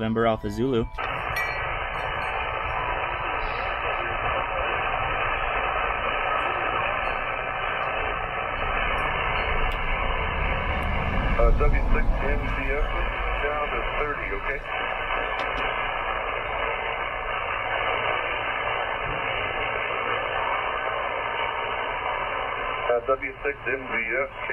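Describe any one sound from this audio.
A radio loudspeaker hisses with steady static.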